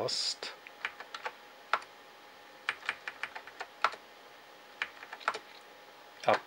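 Computer keys click in short, quick taps.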